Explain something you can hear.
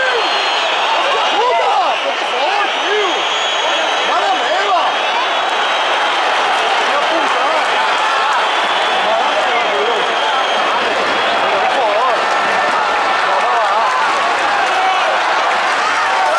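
Fans in a large stadium crowd whistle.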